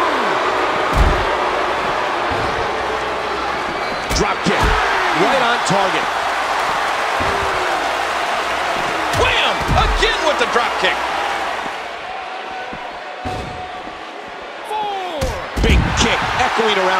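Heavy thuds sound as bodies slam onto a hard floor.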